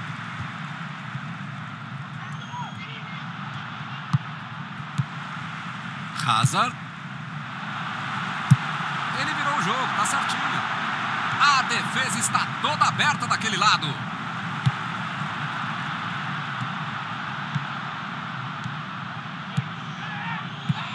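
A large crowd roars steadily in a stadium, swelling at times.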